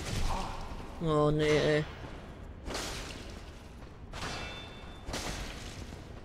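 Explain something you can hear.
A sword strikes armour with metallic clangs.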